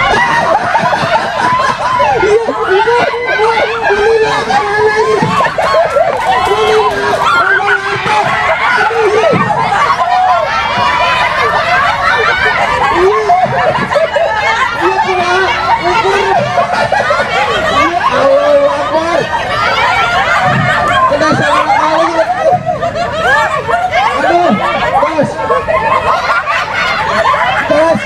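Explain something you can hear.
A crowd of women laugh loudly.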